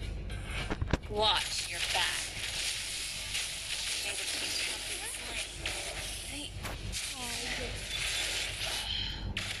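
Game spell effects crackle and clash in a fast battle.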